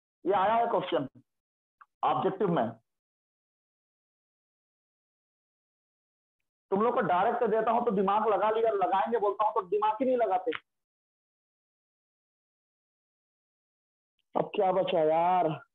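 A young man speaks calmly and explains, close to the microphone, with long pauses.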